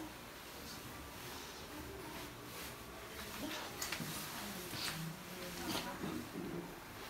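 Bedsheets rustle as a woman moves in bed.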